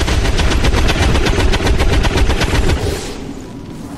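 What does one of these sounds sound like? A rifle fires a rapid, loud burst of shots.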